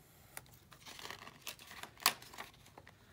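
A paper page rustles as it is lifted and turned.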